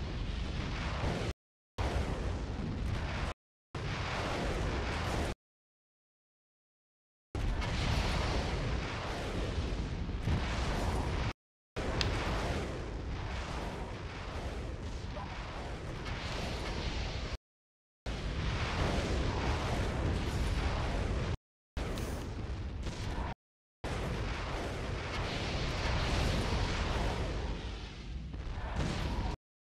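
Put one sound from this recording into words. Gun turrets fire rapid blasts in a video game.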